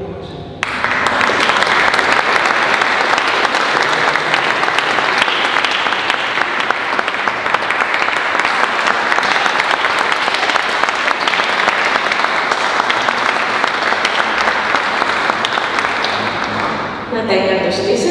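An audience claps and applauds loudly in an echoing hall.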